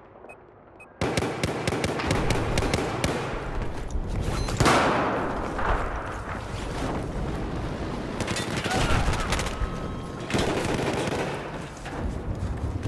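Gunfire rattles in bursts nearby.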